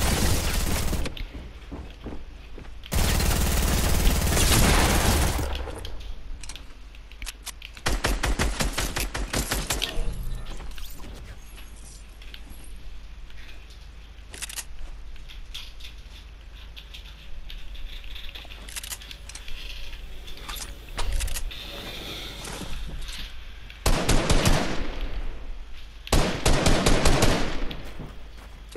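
Guns fire in rapid bursts of loud shots.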